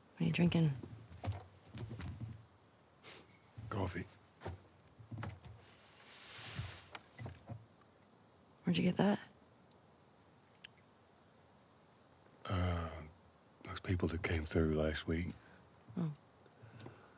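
A young woman speaks quietly and calmly, close by.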